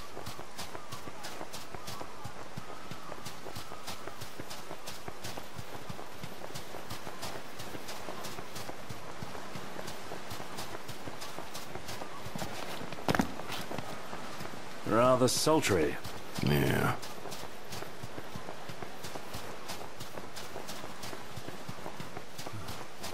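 Footsteps patter quickly across soft sand.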